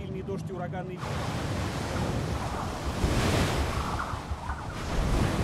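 Stormy waves crash and roar.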